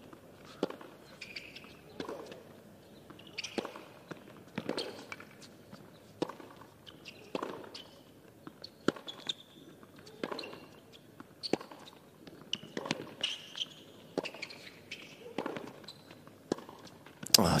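Tennis balls are struck back and forth at a steady pace.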